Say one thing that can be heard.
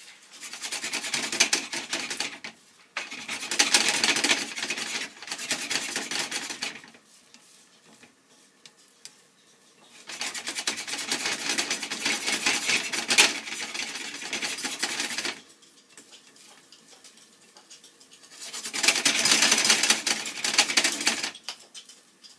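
Eggs sizzle in a frying pan.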